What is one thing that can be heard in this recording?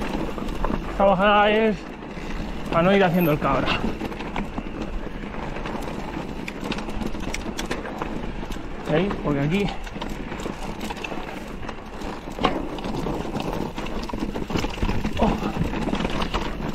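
Mountain bike tyres crunch and rattle over a rocky trail.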